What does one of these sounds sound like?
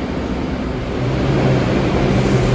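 A train's motor hums with a rising whine.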